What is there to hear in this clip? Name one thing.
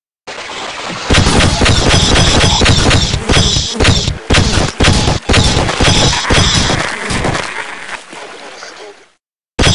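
Laser beams zap in rapid bursts.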